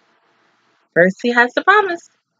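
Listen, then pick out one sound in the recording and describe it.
A young woman speaks loudly and brightly, close up.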